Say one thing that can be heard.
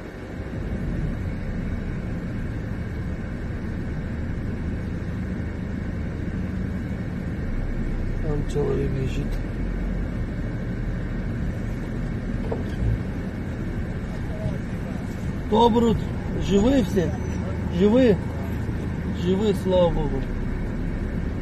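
A car drives along a highway, with tyre and road noise heard from inside the car.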